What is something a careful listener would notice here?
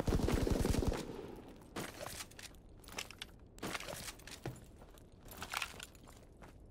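Footsteps thud and scuff on a hard floor.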